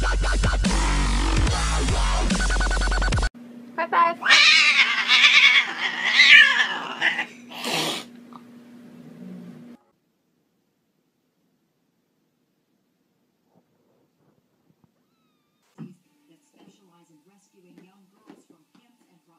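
A kitten mews softly.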